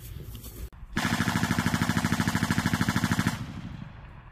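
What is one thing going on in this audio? An automatic weapon fires a long rapid burst outdoors.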